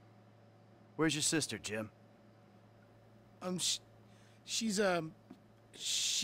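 A man hesitates and answers haltingly.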